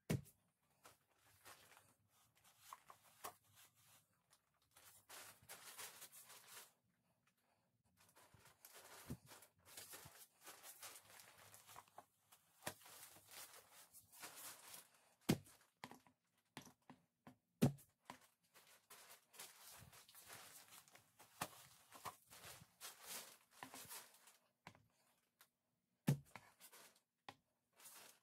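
Stiff brush bristles rustle and scrape against a rough wall.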